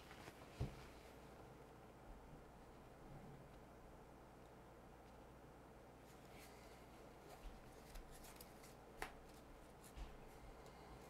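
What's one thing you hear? Playing cards tap softly as they are laid down on a table.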